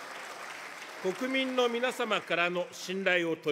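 An older man speaks formally into a microphone in a large echoing hall.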